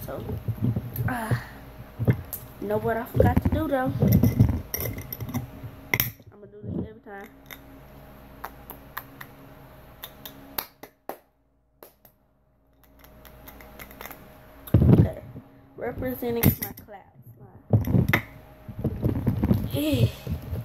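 A glass jar's metal clasp clicks and clinks.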